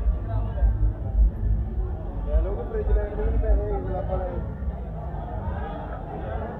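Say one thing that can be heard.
Men and women chatter nearby outdoors on a busy street.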